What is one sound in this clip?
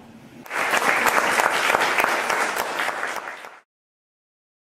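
A small group of people applauds in an echoing room, then the clapping stops abruptly.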